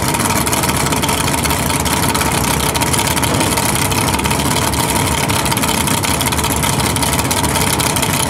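A loud car engine idles with a heavy, choppy rumble close by.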